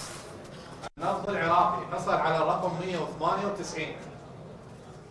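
A man reads out through a microphone.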